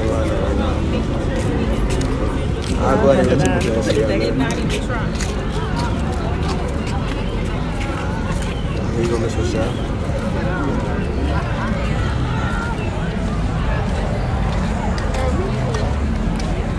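A crowd of young men and women chatters all around outdoors.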